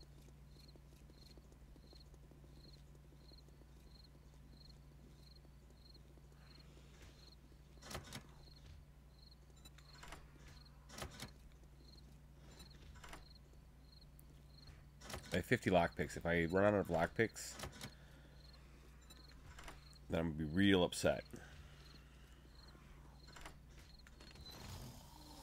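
A lockpick clicks and scratches in a metal lock.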